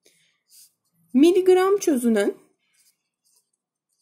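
A felt marker scratches across paper.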